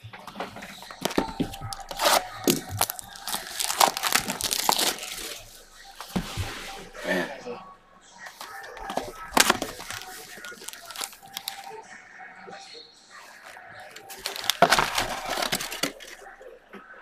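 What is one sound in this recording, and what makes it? A cardboard box rustles and scrapes as it is handled and opened.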